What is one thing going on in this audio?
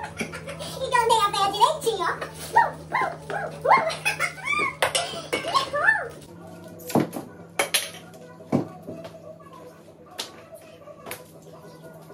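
High-heeled shoes clack on a hard tiled floor.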